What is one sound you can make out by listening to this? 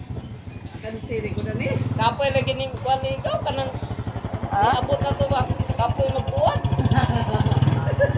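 A motorcycle engine idles and revs up close.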